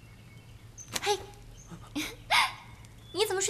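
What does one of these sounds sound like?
A young woman speaks up close.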